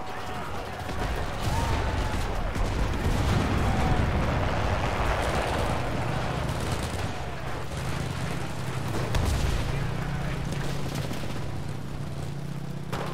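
A heavy vehicle engine rumbles low and steadily.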